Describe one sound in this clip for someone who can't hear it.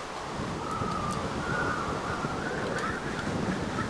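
A melon is chopped and breaks apart with a soft crunch.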